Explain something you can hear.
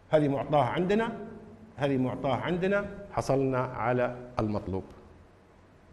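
An older man speaks with animation into a clip-on microphone.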